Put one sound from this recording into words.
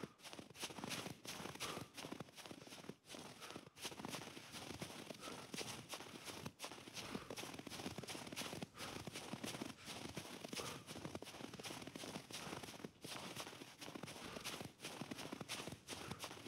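Footsteps crunch rapidly through snow.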